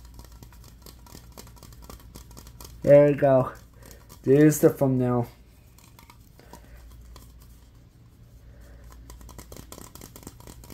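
Fingernails tap fast on a metal aerosol can close to a microphone.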